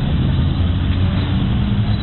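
A motorcycle engine hums as it rides by.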